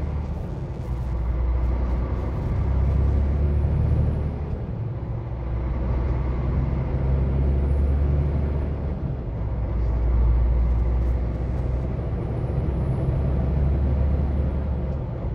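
A vehicle's engine rumbles steadily while driving along a road.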